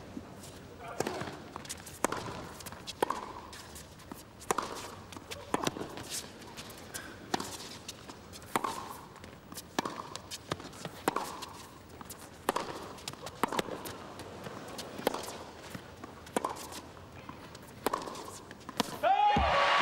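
A tennis ball is struck back and forth with sharp, echoing pops of rackets.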